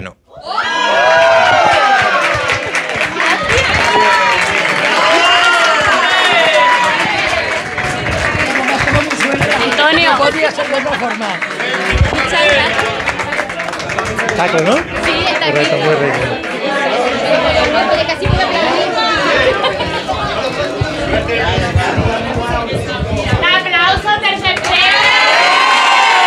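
A woman laughs and cheers loudly.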